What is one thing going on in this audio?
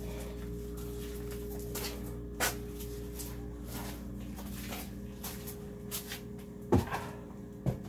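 A towel rubs against a face.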